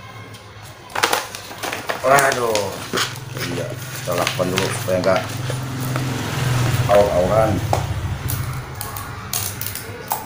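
Paper rustles and crackles as it is folded.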